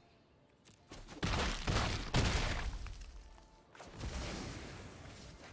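Fiery magical effects whoosh and crackle.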